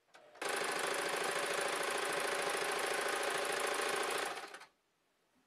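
A sewing machine whirs and rattles steadily as it stitches, then slows and stops.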